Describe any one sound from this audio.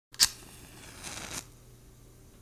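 A match strikes and flares up.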